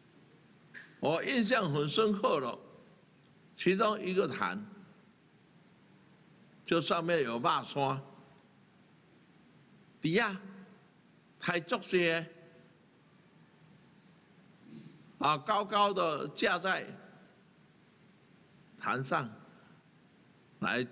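An elderly man speaks slowly and deliberately into a microphone, pausing between phrases.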